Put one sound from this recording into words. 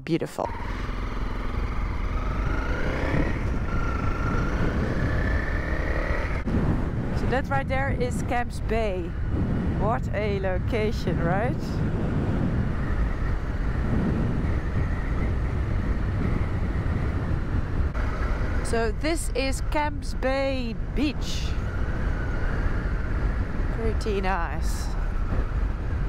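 A motorcycle engine hums and rises in pitch as it speeds up.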